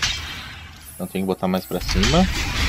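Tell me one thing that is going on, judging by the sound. An axe swings and strikes with a heavy thud.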